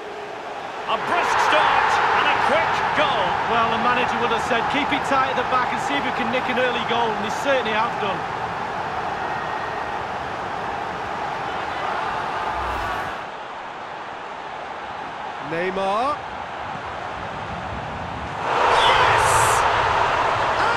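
A stadium crowd cheers and roars loudly.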